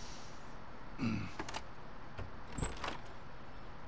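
A door latch clicks and a door opens.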